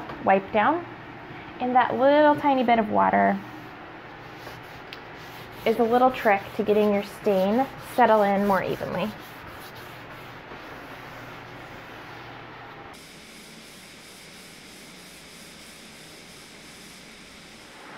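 A cloth rubs softly across a wooden surface.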